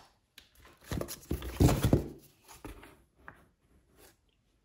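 Cardboard scrapes against cardboard as a hand lifts out a flat card.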